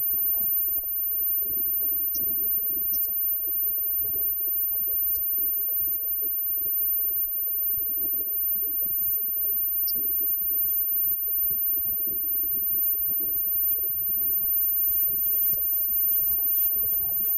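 A drum kit is played with a steady beat.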